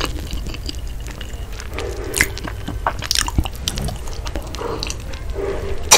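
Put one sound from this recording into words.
A woman sips and gulps a drink close to a microphone.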